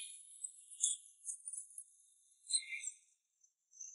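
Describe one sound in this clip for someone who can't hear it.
Broken glass tinkles onto pavement.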